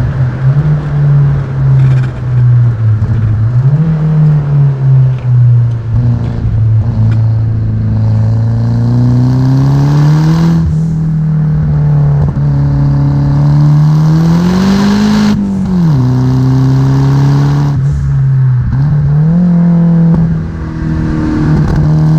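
A small car engine revs and drones steadily, rising in pitch and dropping as gears change.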